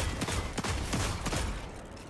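An explosion bursts with a loud bang and crackling sparks.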